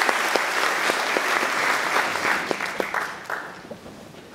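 An audience claps and the applause fades.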